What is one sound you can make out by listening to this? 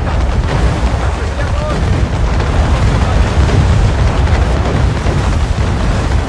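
Explosions blast and crackle close by.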